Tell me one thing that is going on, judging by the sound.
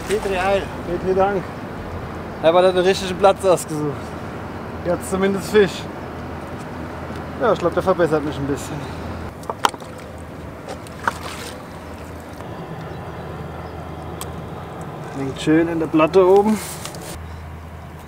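A man talks casually nearby outdoors.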